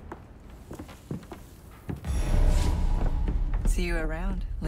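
Footsteps thud on a wooden walkway.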